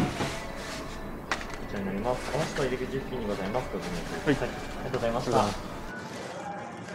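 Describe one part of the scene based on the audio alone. A young man speaks across a counter.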